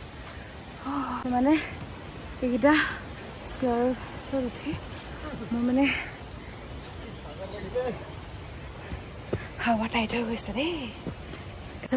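A young woman talks close up with animation.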